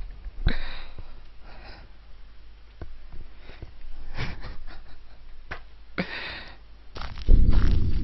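A young man laughs and talks into a headset microphone.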